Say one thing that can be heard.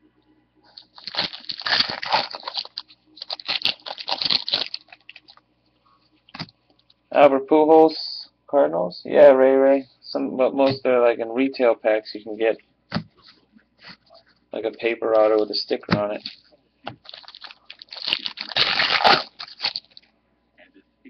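Foil wrappers crinkle and tear as packs are opened.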